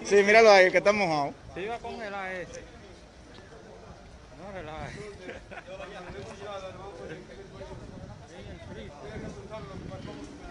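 Men talk at a distance.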